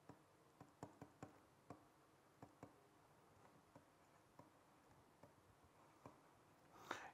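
A pen taps and scratches lightly while writing.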